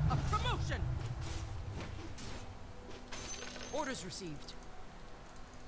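Magical game sound effects whoosh and chime.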